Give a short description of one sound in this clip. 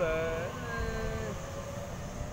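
A train horn sounds briefly.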